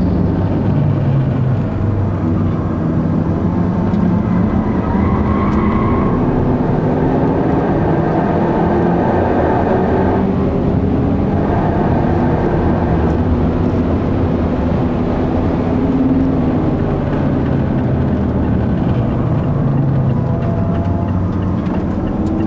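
A car engine roars loudly from inside the car, rising and falling in pitch as it speeds up and slows down.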